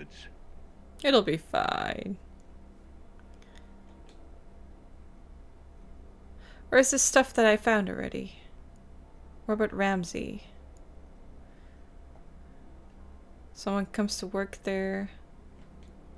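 A young woman speaks calmly and close to a microphone, in short bursts.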